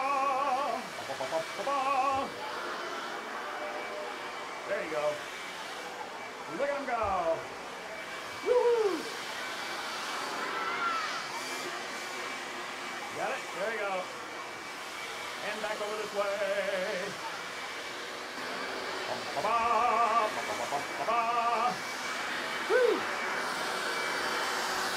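Children shout and cheer excitedly.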